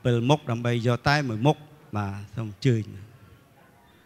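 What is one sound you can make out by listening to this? A man chants loudly into a microphone in a melodic voice.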